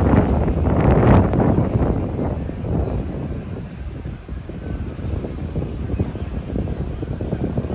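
Wind gusts outdoors, buffeting loudly at first and then easing.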